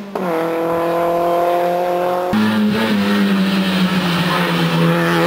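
A rally car engine roars at high revs as the car speeds past.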